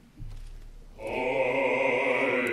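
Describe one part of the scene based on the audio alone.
A men's choir starts singing together in a resonant hall.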